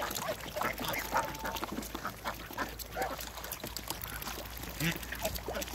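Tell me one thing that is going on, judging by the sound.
Water splashes as ducks bathe.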